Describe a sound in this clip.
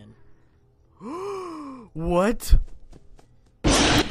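A young man screams loudly in fright close to a microphone.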